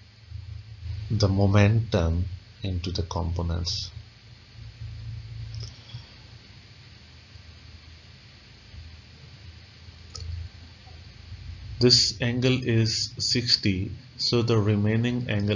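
A man explains calmly and closely into a microphone, with pauses.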